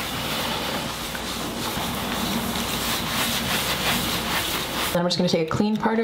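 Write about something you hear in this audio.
A cloth rubs and scrubs across a rough surface.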